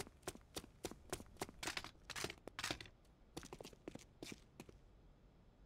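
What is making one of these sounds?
Footsteps tread quickly on a hard floor.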